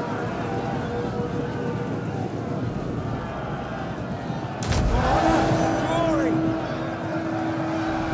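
Horses gallop in a cavalry charge.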